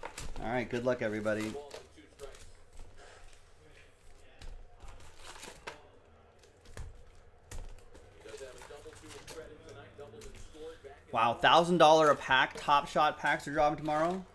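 Foil card packs rustle and crinkle as hands handle them.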